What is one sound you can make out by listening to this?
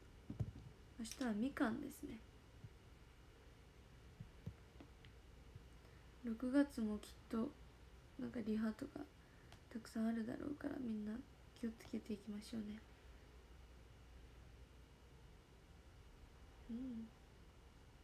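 A young woman speaks quietly and calmly, close by.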